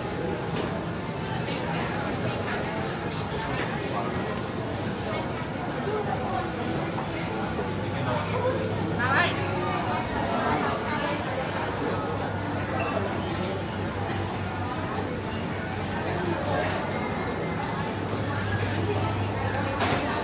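Footsteps of passersby tap on a hard floor.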